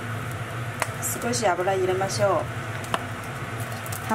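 Oil pours into a hot pan.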